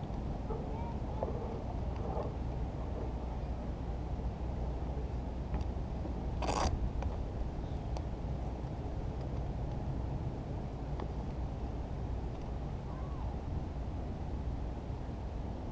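A fishing reel whirs softly as its handle is wound.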